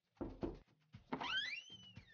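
A metal door handle clicks as it is pressed down.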